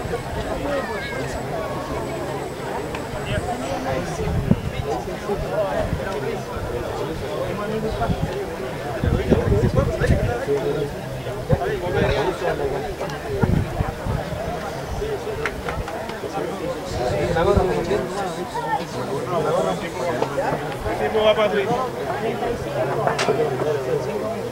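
Men call out and talk at a distance across an open field outdoors.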